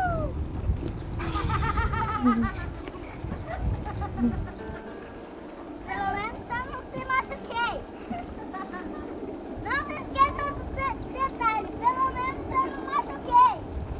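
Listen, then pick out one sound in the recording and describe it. A child rustles through dense leafy bushes.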